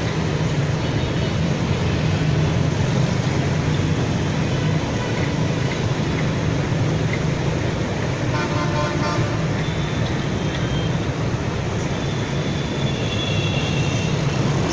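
Heavy traffic of motorbikes and cars roars steadily along a busy road.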